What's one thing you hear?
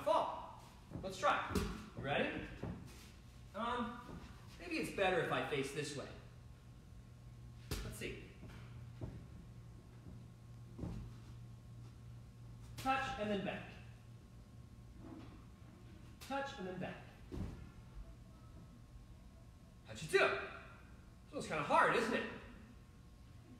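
A man talks calmly in an echoing room.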